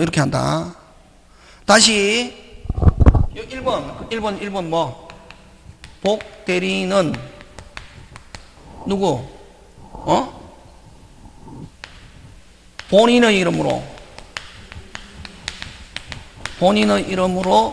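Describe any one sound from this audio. A man speaks calmly through a microphone in an echoing room, in short phrases with pauses.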